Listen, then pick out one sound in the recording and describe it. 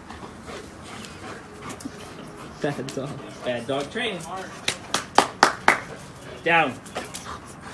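A dog's paws patter across grass as it runs.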